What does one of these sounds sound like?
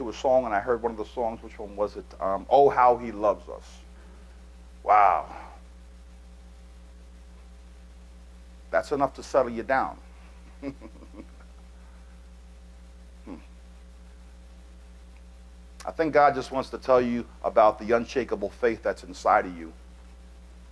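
A man speaks calmly into a microphone, with pauses, heard through loudspeakers in a large room.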